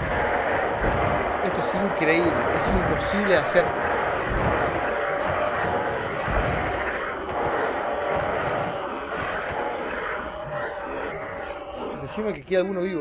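Flames roar and crackle in a video game.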